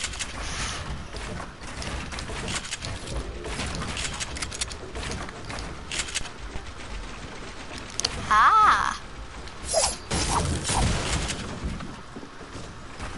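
Quick game building clicks and thuds rattle in rapid bursts.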